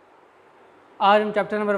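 A man speaks calmly and clearly close by.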